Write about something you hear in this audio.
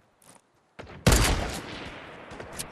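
A rifle fires a single loud shot that rings out and fades.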